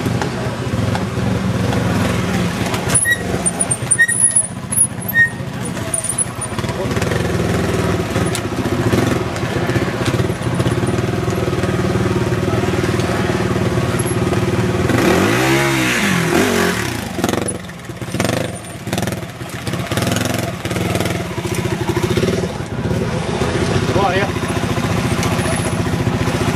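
Motorcycle tyres scrape over rock and dirt.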